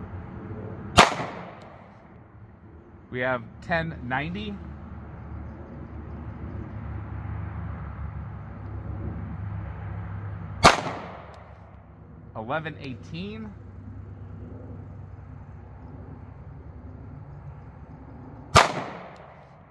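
A pistol fires single loud shots outdoors.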